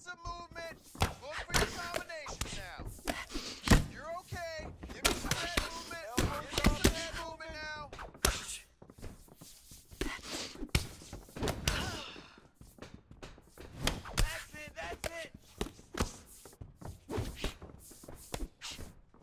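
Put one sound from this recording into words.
Punches thud against bodies in quick, sharp hits.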